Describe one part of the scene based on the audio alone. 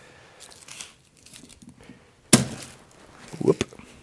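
A knife taps on a wooden board.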